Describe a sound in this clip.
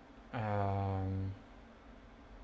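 A man chants a low, steady note close by.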